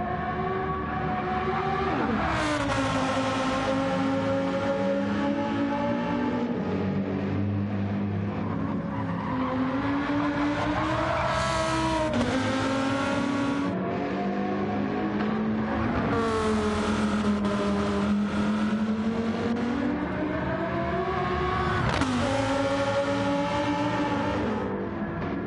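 A racing car engine roars loudly, rising in pitch and dropping with each gear change.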